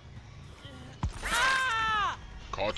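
A blade strikes flesh with a sharp wet hit.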